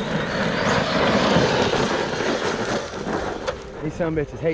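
A toy car's tyres spray and crunch over loose gravel.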